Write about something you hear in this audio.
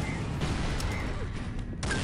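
An energy weapon fires with a humming blast.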